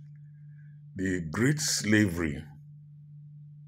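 A man speaks briefly and calmly, close to the microphone.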